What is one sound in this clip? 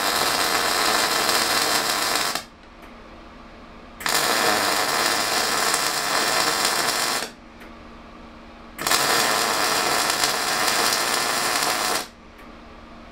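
An electric welder crackles and hisses in steady bursts.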